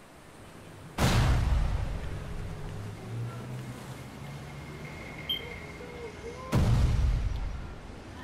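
A game character lands with a heavy rushing thud.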